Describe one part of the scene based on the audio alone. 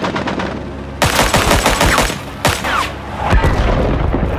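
A rifle fires several loud shots close by.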